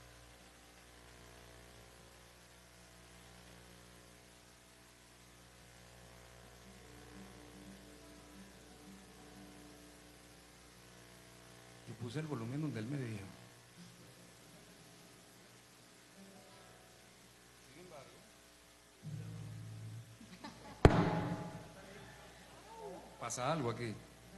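A man tunes an acoustic guitar, plucking single strings softly.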